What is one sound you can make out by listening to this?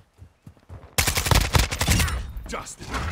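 A rifle fires a loud rapid burst.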